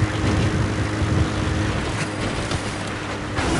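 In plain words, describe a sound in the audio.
A jeep engine rumbles as the vehicle drives along.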